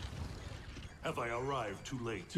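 A man speaks calmly in a low, deep voice.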